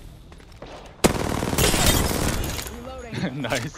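A rifle fires a loud, sharp burst of shots.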